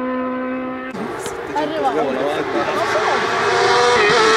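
A race car engine revs hard, rising and falling as the car speeds closer.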